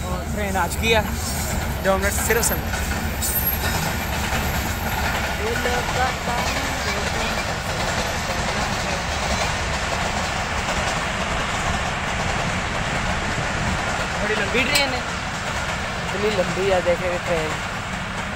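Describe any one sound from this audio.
A passenger train rumbles along its tracks in the distance.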